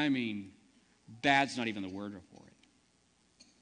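A man preaches through a microphone in a large room, speaking with emphasis.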